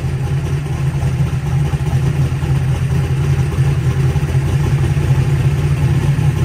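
A car engine idles loudly with a steady, rumbling drone.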